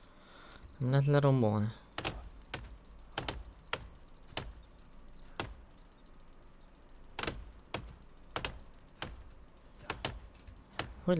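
An axe chops into wood with sharp knocks.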